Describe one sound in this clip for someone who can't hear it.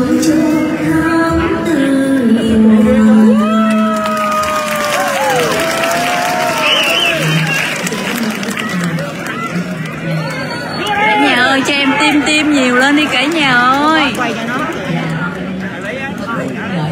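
A young woman sings into a microphone, heard through loudspeakers.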